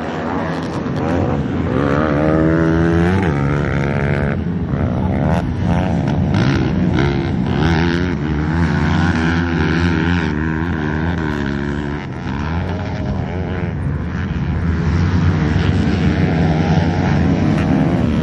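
Motorbike engines rev and whine loudly, rising and falling in pitch.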